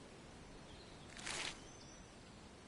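A boot steps onto gravel.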